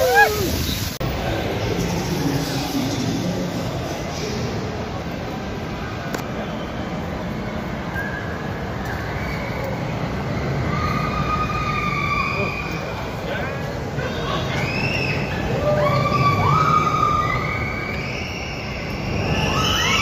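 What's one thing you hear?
A crowd murmurs in a large echoing hall.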